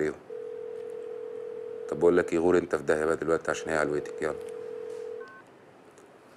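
A phone line tone beeps steadily.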